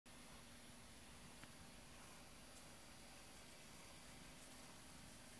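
A cat purrs softly up close.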